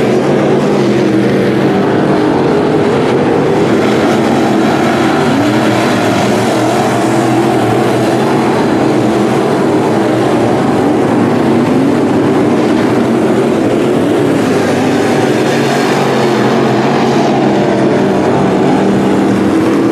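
Race car engines rev up and down as the cars take a turn.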